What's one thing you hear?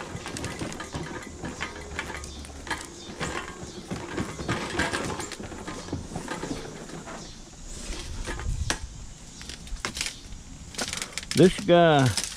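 A light metal window frame rattles and clatters as it is handled.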